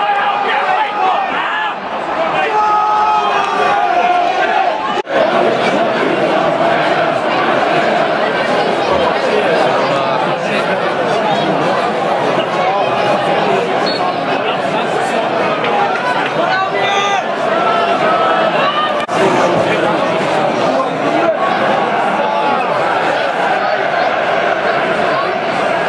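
A large football crowd chants and sings in an open-air stadium.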